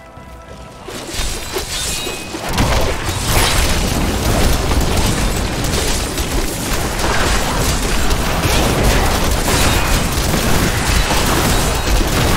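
Weapons clash and magic blasts boom in a fierce fight.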